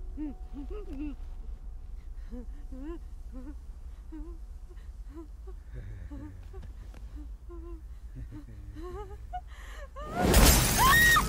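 A young woman sobs and whimpers quietly close by.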